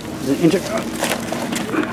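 A hand taps and rustles against plastic toy packaging.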